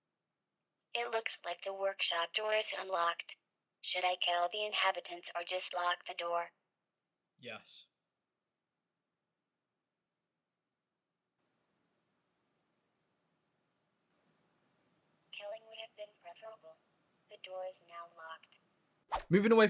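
A recorded voice speaks through a small speaker.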